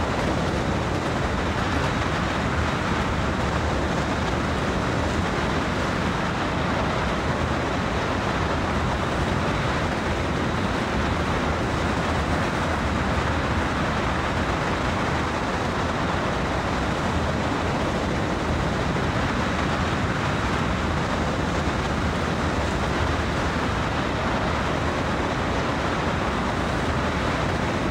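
A diesel locomotive engine rumbles steadily from inside the cab.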